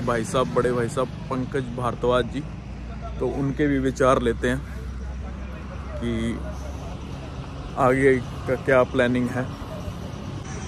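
A young man talks calmly and close up, straight to the listener.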